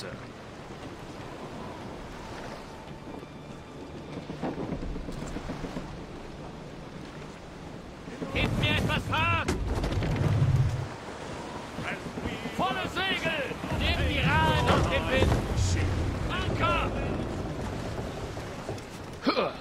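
Water splashes against a ship's hull.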